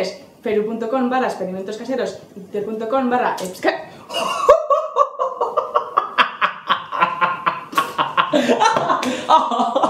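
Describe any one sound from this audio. A young man talks and laughs close to a microphone.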